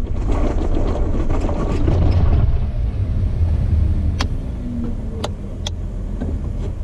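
A vehicle engine idles and rumbles low and steady.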